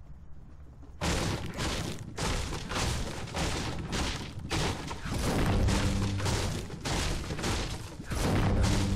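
A pickaxe strikes wood in quick, repeated knocks.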